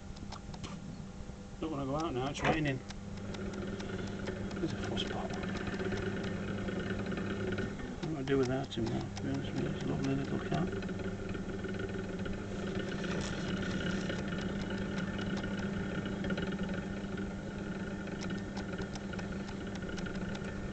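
A potter's wheel hums steadily as it spins.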